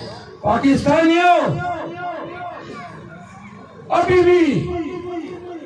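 A man speaks forcefully into a microphone outdoors, his voice amplified and echoing.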